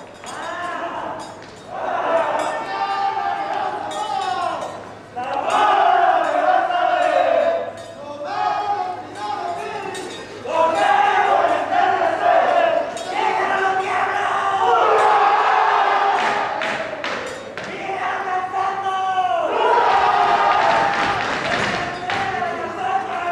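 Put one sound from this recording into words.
A group of men and women sing together in a large hall.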